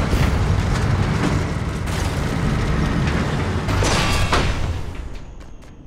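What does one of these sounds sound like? A heavy tank engine rumbles deeply as the tank rolls along.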